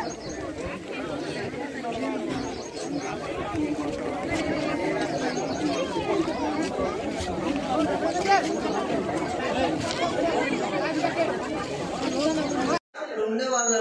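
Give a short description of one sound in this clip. A crowd of men and women talk and shout over each other outdoors.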